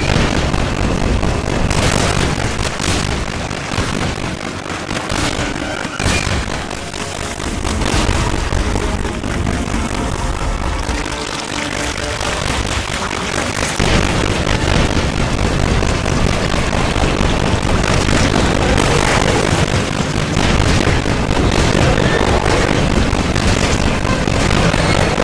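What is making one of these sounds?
Fire bursts and crackles in loud blasts.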